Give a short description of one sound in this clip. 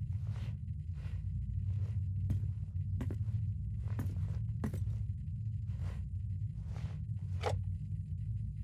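Footsteps thud on a hard floor at an even pace.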